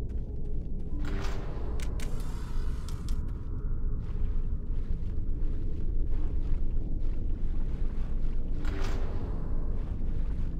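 A heavy door whooshes as it opens.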